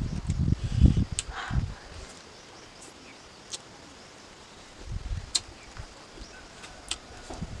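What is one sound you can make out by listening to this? A young woman chews food close up with soft wet mouth sounds.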